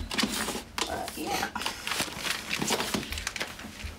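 A plastic drawer slides open and shut.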